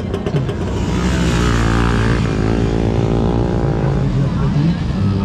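A motorcycle engine revs loudly nearby.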